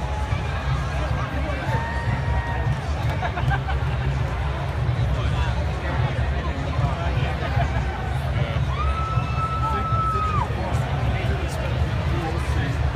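A crowd chatters and cheers nearby.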